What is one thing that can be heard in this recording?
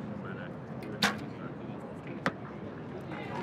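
An arrow thuds into a target.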